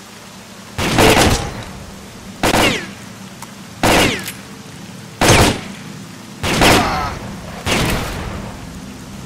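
A shotgun fires several loud shots, each echoing briefly.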